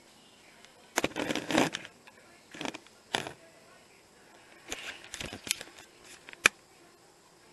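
A paper tissue rustles and crinkles close by.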